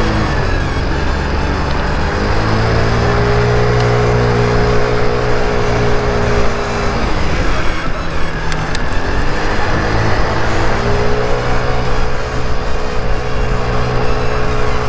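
A scooter engine hums steadily close by, rising and falling as it speeds up and slows down.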